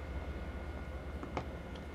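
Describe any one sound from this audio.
A train engine hums steadily nearby.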